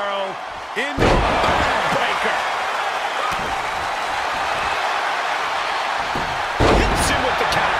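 Wrestlers' bodies thud heavily onto the ring mat.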